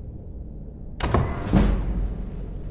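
A lock snaps open with a loud clunk.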